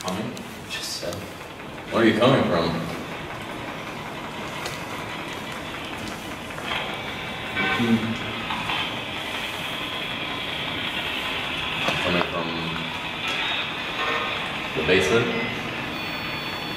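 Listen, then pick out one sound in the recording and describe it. A man speaks to a group outdoors, his voice somewhat distant.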